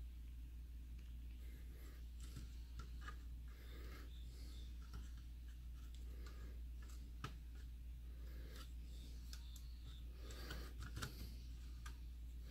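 Small metal tools tap and scrape against a plastic casing.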